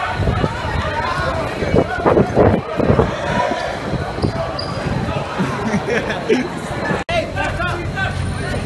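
A crowd of people talk and shout loudly all around.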